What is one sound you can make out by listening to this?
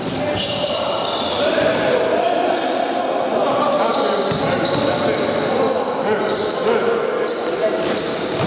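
Young men shout and call out to each other during play.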